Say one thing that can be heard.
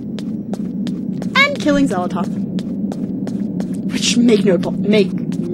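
Quick footsteps tap steadily on stone.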